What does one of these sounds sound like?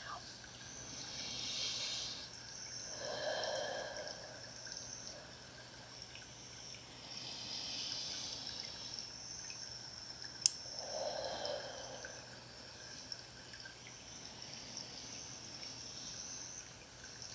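A woman whispers softly close to a microphone.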